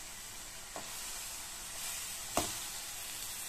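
A metal spatula scrapes and taps against a pan.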